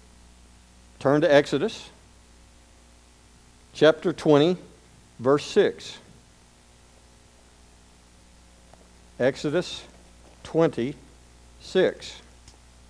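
A man speaks slowly into a microphone, with long pauses.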